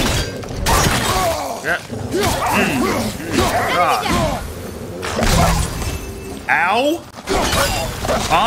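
A beast snarls and growls.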